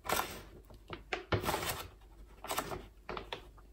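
Coffee beans rattle as they are scooped from a bag.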